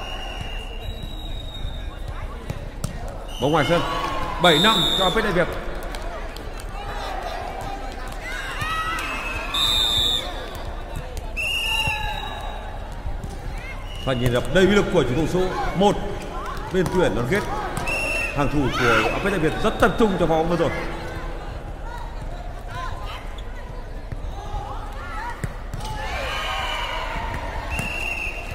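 A volleyball is struck with hands, again and again.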